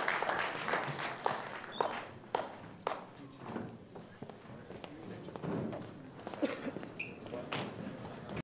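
Several men and women chat quietly in a large room.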